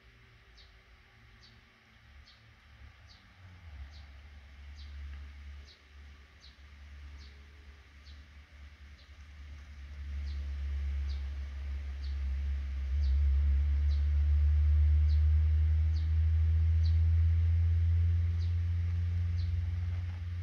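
Baby birds cheep in short, high, repeated peeps close by.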